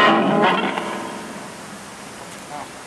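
An electric guitar chord rings out through an amplifier and slowly fades.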